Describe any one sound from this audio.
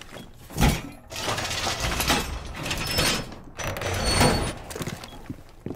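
A wooden barricade is smashed apart with loud, heavy blows.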